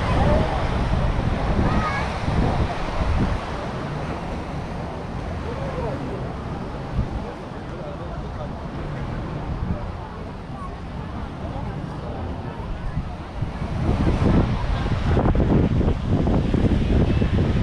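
Adults chat and call out at a distance.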